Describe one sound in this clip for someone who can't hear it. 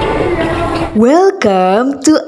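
A young woman speaks cheerfully and with animation, close by.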